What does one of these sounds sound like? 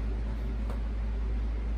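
A fingertip taps on a touchscreen.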